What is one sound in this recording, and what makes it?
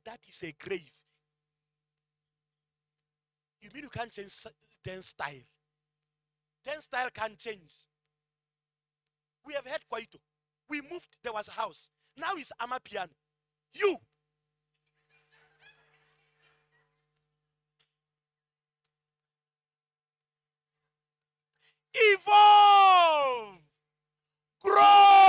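A man preaches with animation into a microphone, heard through loudspeakers in a large hall.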